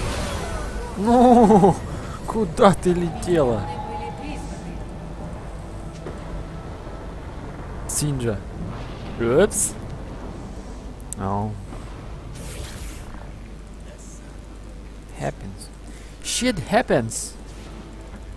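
A young man speaks casually into a nearby microphone.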